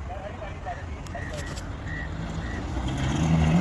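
A car engine rumbles as the car drives closer over a dirt track.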